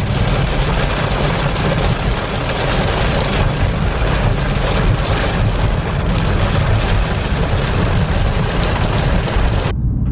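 Windshield wipers sweep across the glass.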